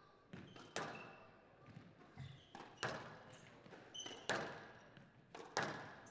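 Rackets strike a squash ball with sharp cracks.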